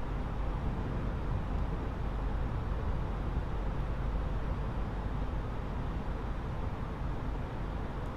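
Aircraft engines hum steadily and low.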